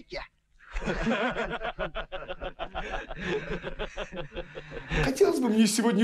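Men laugh together close by.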